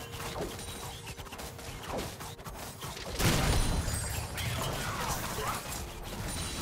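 Magic spells zap and burst in a video game battle.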